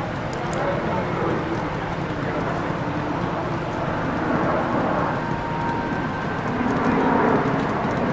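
Jet engines roar steadily overhead.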